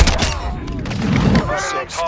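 A grenade explodes with a heavy boom.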